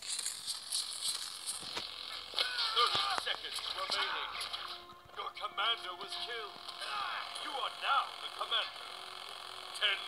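Bullets whistle and zip past.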